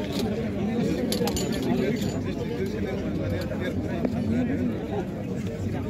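Several men talk close by.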